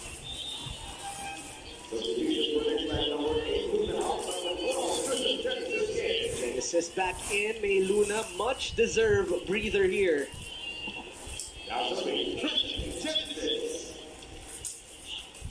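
A plastic bag rustles and crinkles as hands handle it.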